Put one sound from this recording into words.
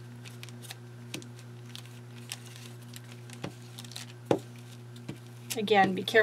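A plastic sleeve crinkles as hands handle it.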